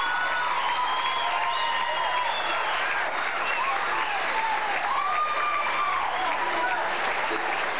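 Acoustic guitars strum and pick a lively bluegrass tune.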